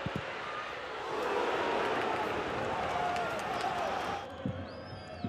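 A stadium crowd roars loudly in a sudden surge and then dies down.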